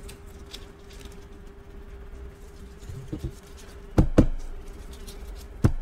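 Stiff plastic card sleeves rustle and click in gloved hands.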